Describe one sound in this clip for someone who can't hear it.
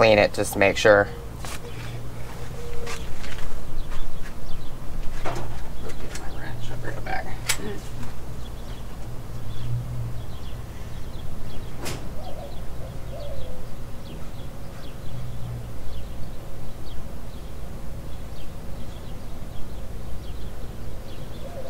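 A motor hums low and steady nearby.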